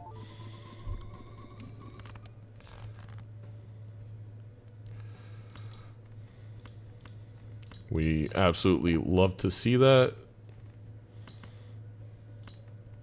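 Soft game chimes and clicks ring out.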